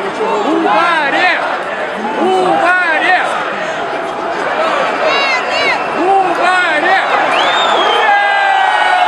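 A large crowd of men chants in rhythmic shouts outdoors.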